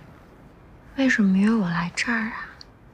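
A young woman speaks close by, puzzled and with feeling.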